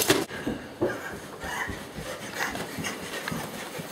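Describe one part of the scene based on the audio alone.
Footsteps run along a corridor.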